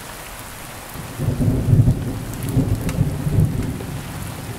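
Thunder rumbles deep and loud in the distance, rolling on for a few seconds.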